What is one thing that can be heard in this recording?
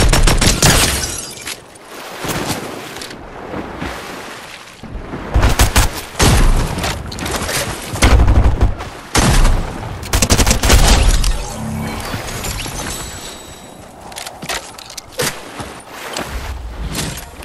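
Water splashes as a character swims.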